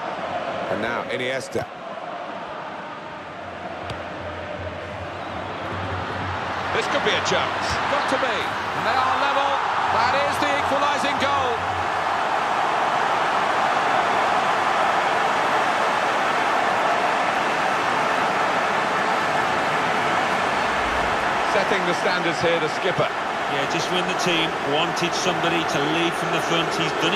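A large stadium crowd roars and cheers loudly, swelling after a goal.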